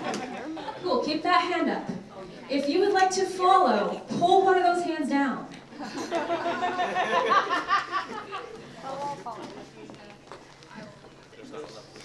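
A woman sings into a microphone, heard through loudspeakers in a large echoing room.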